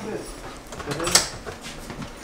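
A door handle clicks as a glass door opens.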